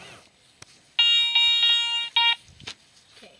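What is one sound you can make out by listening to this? A metal detector beeps rapidly.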